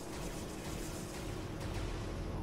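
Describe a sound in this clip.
A small bomb bursts with a crackling blast.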